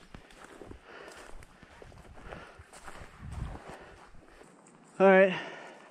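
Footsteps rustle through low brush and moss.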